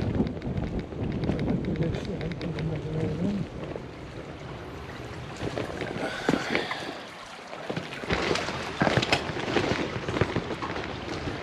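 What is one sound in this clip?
Footsteps scuff along a paved street.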